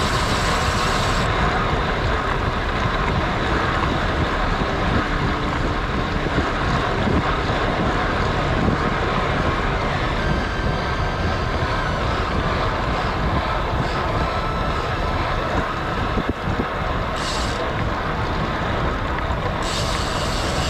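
Wind rushes loudly past a road cyclist's ears.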